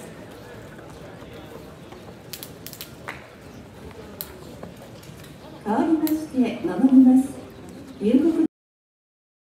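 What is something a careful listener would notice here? Spectators chatter nearby.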